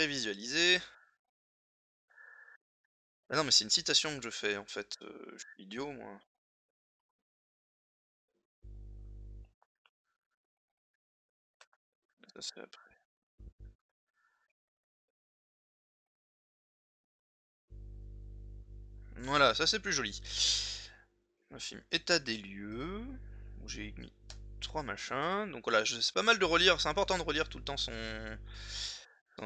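A man speaks calmly and close to a microphone, in bursts with pauses.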